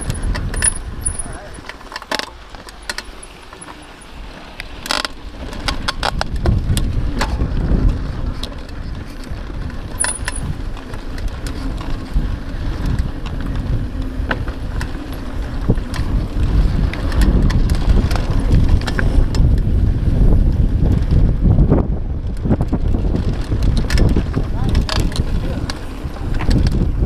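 Wind rushes loudly past close by.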